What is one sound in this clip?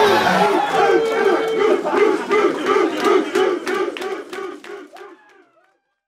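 Hands clap in a steady rhythm.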